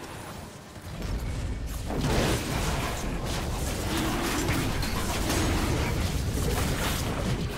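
Video game spell effects crackle and burst in a busy fight.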